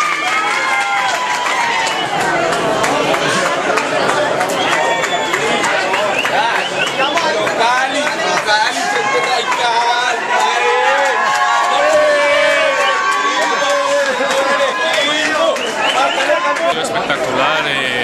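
A crowd of men shouts and cheers loudly nearby.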